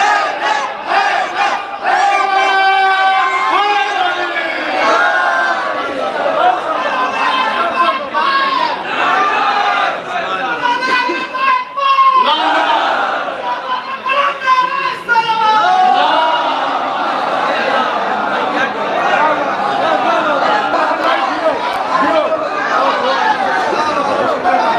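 A crowd of men cheers and calls out loudly.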